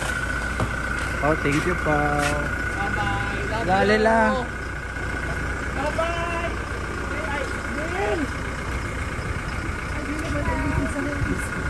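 A man talks from inside a car.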